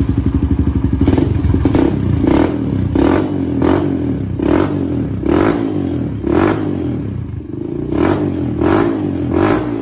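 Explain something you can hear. A single-cylinder four-stroke dirt bike engine revs in short bursts.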